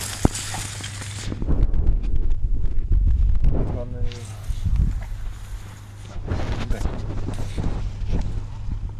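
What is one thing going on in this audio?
Grass leaves rustle and brush close by.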